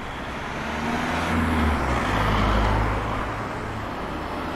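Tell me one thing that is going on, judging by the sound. A vehicle drives by close with a low engine rumble.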